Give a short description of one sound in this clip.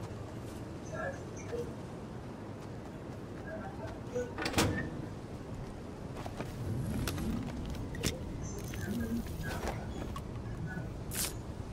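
Quick footsteps patter along the ground.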